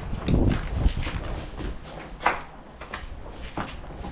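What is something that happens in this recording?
Footsteps scuff on concrete stairs.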